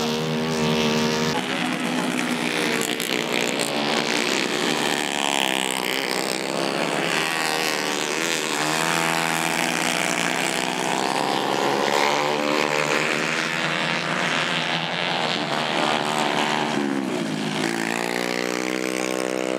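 Two-stroke racing kart engines whine and rev as karts race through corners on a dirt track.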